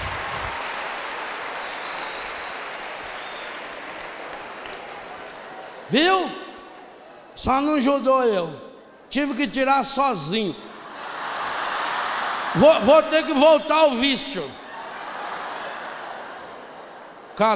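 A large crowd laughs.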